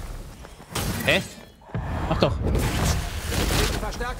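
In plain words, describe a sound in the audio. Fiery explosions burst with loud crashes.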